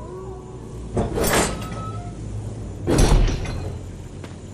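An iron gate clangs shut with a loud bang.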